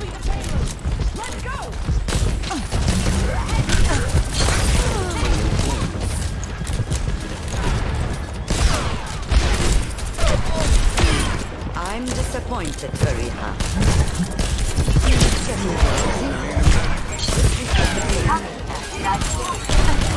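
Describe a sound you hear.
Game gunfire crackles in rapid bursts.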